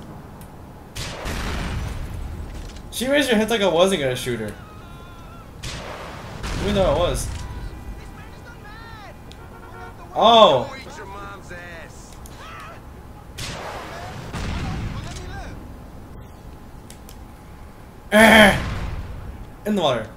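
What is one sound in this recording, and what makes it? Loud explosions boom and rumble several times.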